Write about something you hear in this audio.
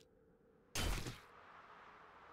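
A machete swings through the air with a whoosh.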